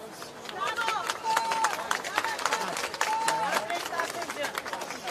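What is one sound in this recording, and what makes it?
A man shouts loudly through a megaphone outdoors.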